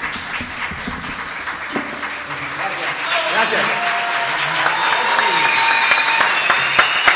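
A small band plays acoustic guitars and keyboards live.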